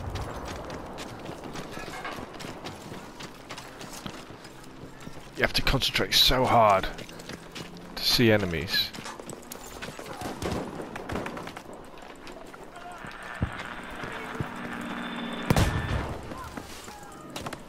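Footsteps crunch quickly over snow and gravel.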